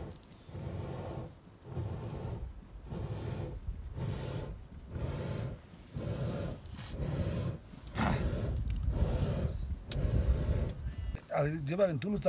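A wooden stick rubs and scrapes rhythmically against a pot.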